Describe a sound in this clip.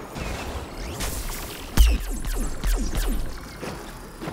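Energy blasts fire with sharp zaps and heavy booms.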